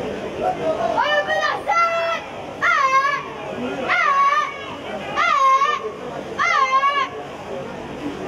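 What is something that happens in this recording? A crowd cheers and shouts in the distance.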